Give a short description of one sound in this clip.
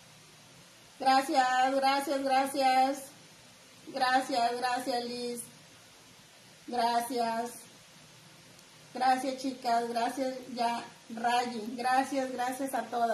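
A woman speaks with animation close to the microphone.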